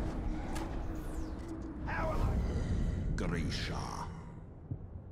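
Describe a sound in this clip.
Fighting noises clash and rumble loudly, then die away.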